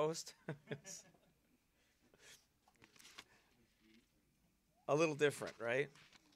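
Pages of a book rustle as a man leafs through it.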